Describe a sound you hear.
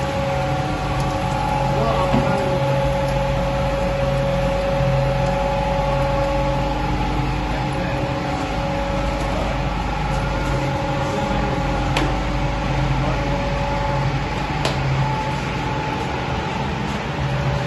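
A machine motor hums steadily and loudly.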